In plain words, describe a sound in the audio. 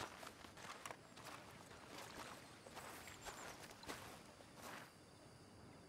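Boots splash through shallow water.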